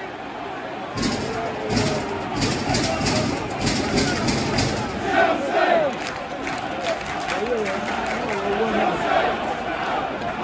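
A crowd claps loudly.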